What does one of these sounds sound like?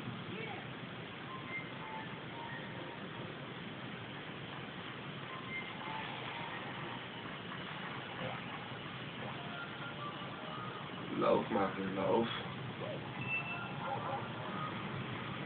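Video game music plays faintly through a television speaker.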